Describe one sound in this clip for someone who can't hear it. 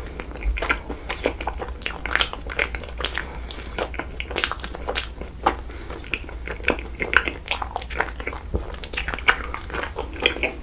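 A young man chews soft sticky food wetly and close to the microphone.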